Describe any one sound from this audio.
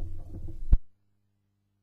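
A stylus lifts off a record with a loud click.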